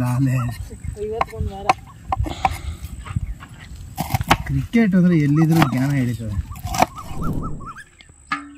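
A knife chops vegetables on a wooden board.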